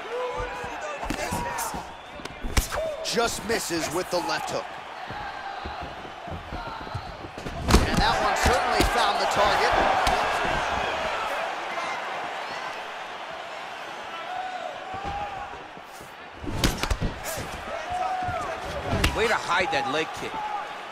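Punches thud against a body in quick bursts.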